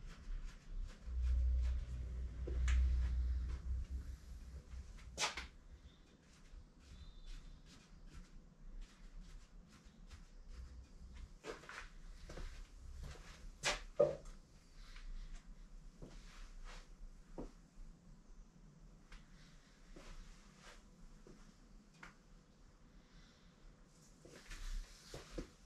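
Small cards tap and click as they are handled one by one.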